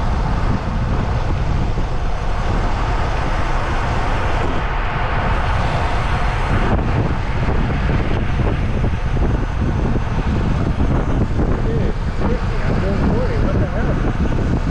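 Wind buffets the microphone loudly with a low rumble.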